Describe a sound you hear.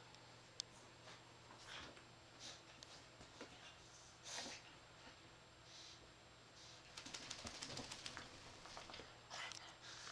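A small dog rustles and tugs at a blanket.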